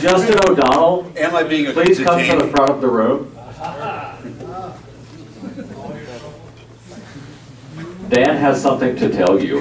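A man speaks with animation into a microphone, heard through a loudspeaker in an echoing room.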